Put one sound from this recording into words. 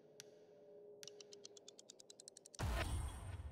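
Quick interface clicks tick in a rapid run.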